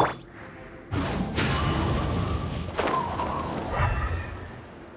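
A magical burst of energy whooshes.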